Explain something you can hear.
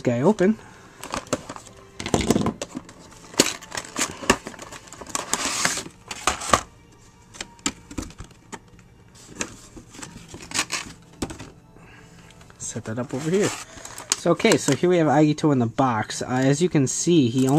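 Cardboard and plastic packaging rustles and crinkles under handling hands.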